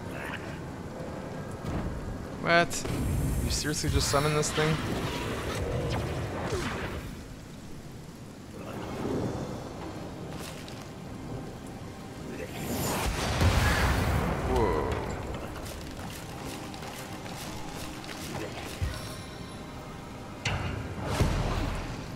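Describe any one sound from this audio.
Fiery spells crackle and roar in a fight.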